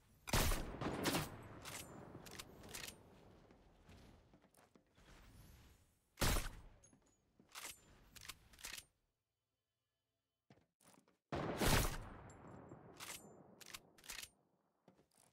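A rifle's bolt clicks and clacks while reloading.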